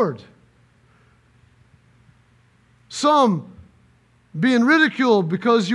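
A middle-aged man speaks with emphasis through a microphone.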